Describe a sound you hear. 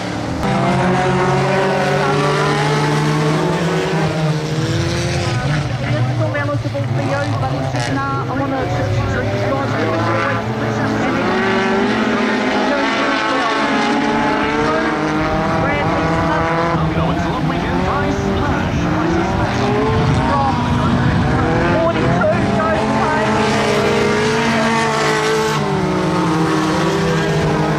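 Tyres crunch and skid on loose dirt.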